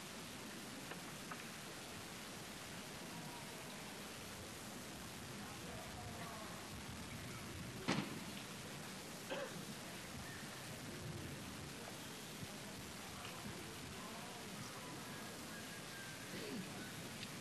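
A large crowd murmurs steadily outdoors.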